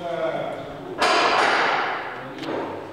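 Lift doors slide open.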